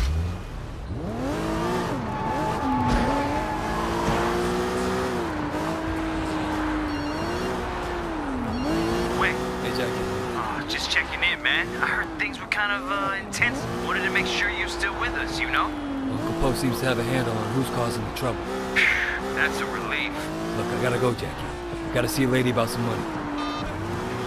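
A car engine revs, rising and falling in pitch.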